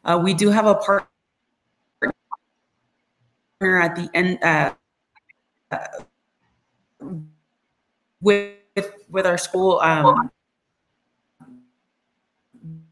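A woman speaks with animation over an online call, in short bursts with pauses.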